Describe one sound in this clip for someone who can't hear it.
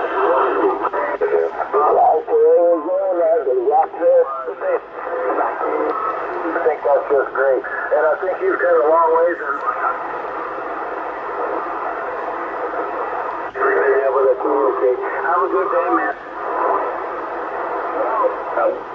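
Distorted voices come in and out from a radio loudspeaker as the radio is tuned.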